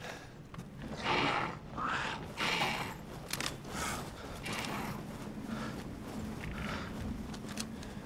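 A man talks with animation, close to a headset microphone.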